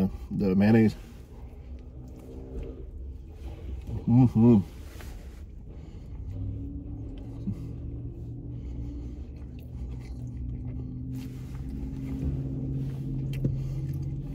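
A man chews and munches food.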